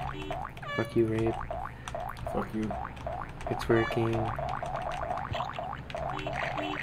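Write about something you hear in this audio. Short electronic hopping blips repeat quickly throughout.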